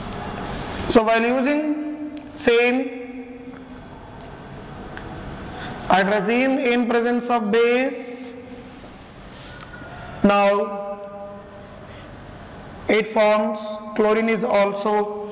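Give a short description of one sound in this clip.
A man speaks calmly and clearly into a nearby microphone, explaining in pauses.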